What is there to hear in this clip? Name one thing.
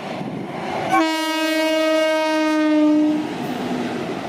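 A locomotive horn blares loudly for about two seconds.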